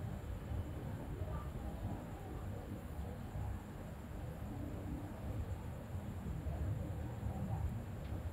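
A coin scrapes softly as it slides across paper.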